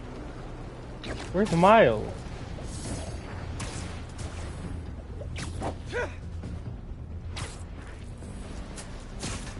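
Web lines shoot and snap with sharp whooshes.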